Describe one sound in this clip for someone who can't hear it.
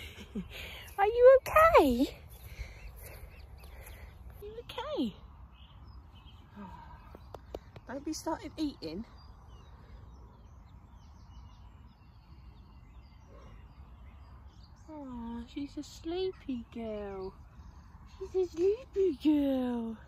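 A young woman talks softly and warmly close by.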